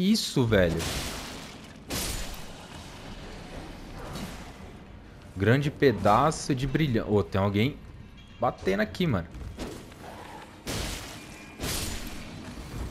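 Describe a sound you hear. A sword swings and strikes with heavy thuds.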